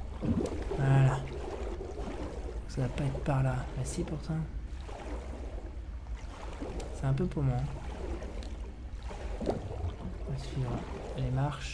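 Bubbles gurgle softly as they rise through water.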